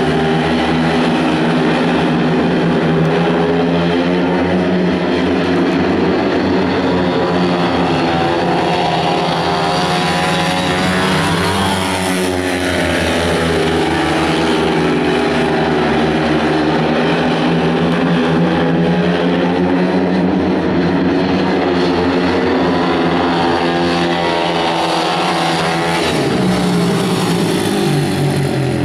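Motorcycle engines roar and whine loudly, rising and falling in pitch as the bikes race around a track.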